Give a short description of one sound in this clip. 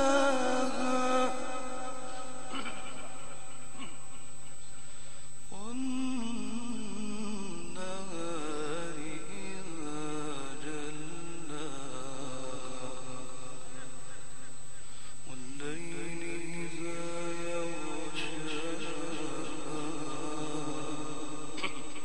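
A man chants in long, drawn-out melodic phrases through a microphone, echoing in a large hall.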